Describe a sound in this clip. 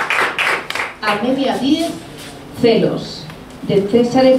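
A woman speaks into a microphone with animation.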